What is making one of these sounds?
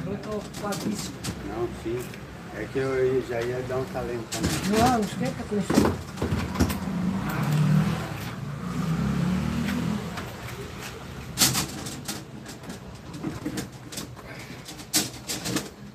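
Metal tubing clinks and taps as it is handled.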